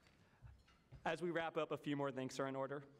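A young man speaks calmly into a microphone, heard through loudspeakers in a large room.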